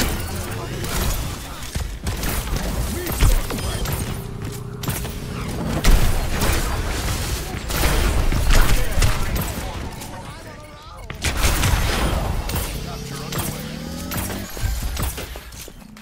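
Game explosions boom and crackle.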